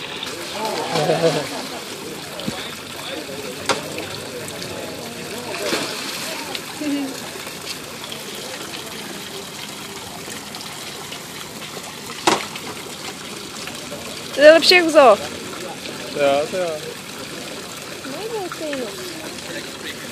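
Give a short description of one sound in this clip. Water splashes as seals churn the surface close by.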